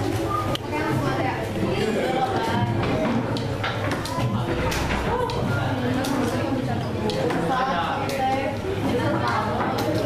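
Several teenagers chatter and talk over each other close by in a room.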